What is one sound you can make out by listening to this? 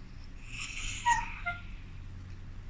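A dog yawns with a high squeaky whine.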